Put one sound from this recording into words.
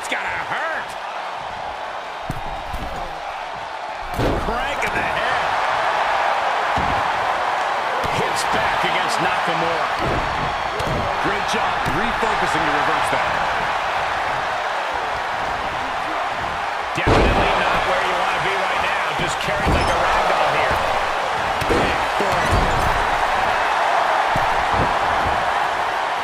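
A large crowd cheers loudly in an arena.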